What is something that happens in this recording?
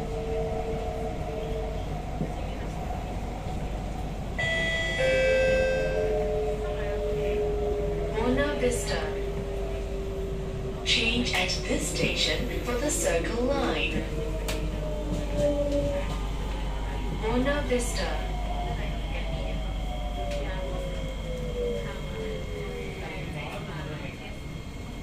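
Train motors whine, gliding in pitch as the train slows down.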